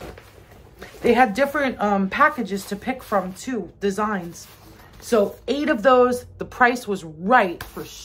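A woman speaks close to the microphone with animation.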